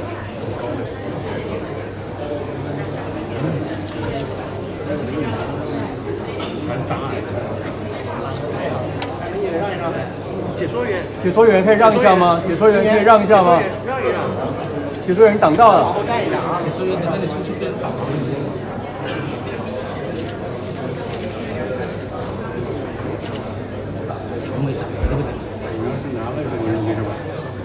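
A crowd of men and women murmur and chatter close by, all around.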